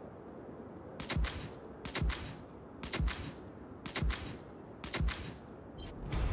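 A countdown timer beeps once a second.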